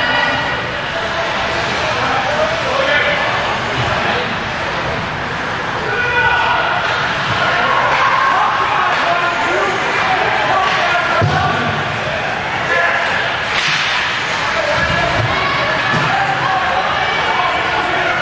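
Ice skates scrape and carve across the ice.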